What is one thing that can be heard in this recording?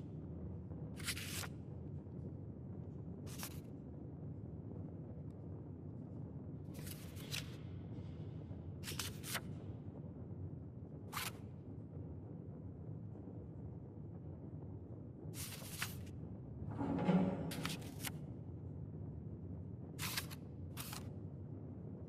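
Small stickers tap and click softly onto paper.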